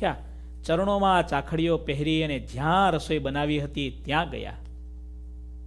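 A man chants in a melodic voice, close to a microphone.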